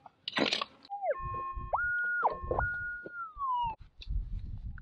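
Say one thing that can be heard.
A metal detector beeps and whines in steady tones.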